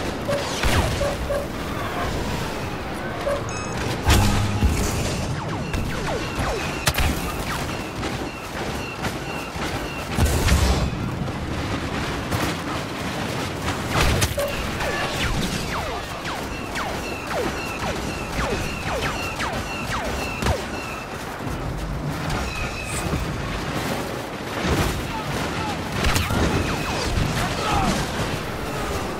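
Blaster shots crack and zap in rapid bursts.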